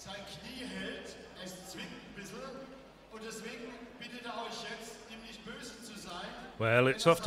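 A crowd of men and women talks and murmurs nearby.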